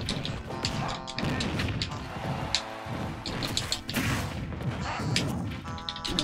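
Blows land with sharp smacks and thuds.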